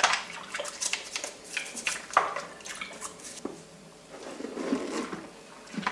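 Plastic parts knock and scrape against a sink.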